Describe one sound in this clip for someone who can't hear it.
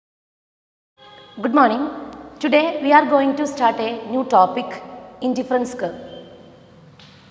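A woman speaks clearly and calmly into a close microphone.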